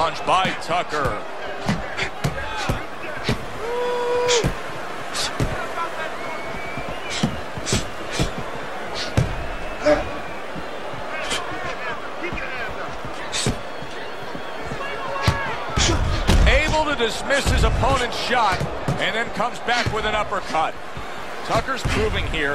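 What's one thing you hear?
A crowd murmurs and cheers in a large hall.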